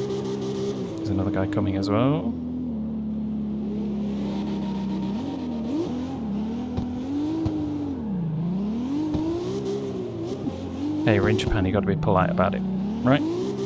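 Tyres screech as a car drifts around bends.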